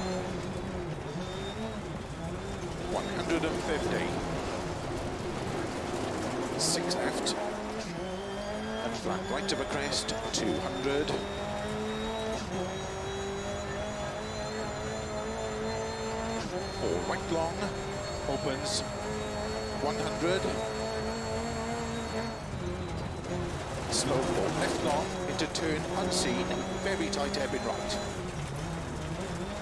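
Tyres crunch and skid on gravel.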